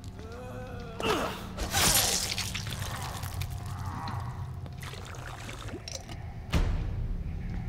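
A blade stabs into a body with heavy, wet thuds.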